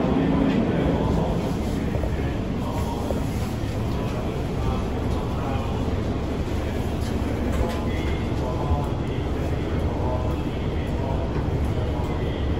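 A train hums steadily while standing still.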